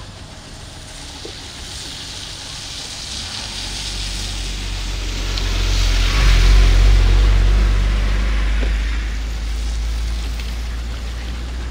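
An elephant tears and munches grass close by.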